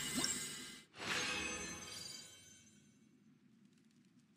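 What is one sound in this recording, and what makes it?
A reward chime rings out and fades.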